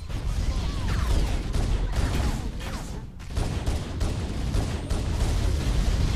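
Video game gunfire rattles rapidly with deep booms.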